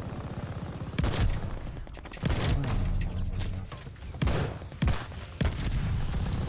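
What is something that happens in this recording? Rifle shots crack loudly, one after another.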